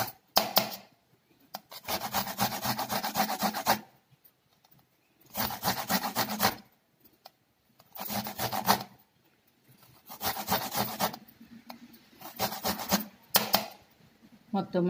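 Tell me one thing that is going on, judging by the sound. Fruit rasps against a metal grater in short scraping bursts.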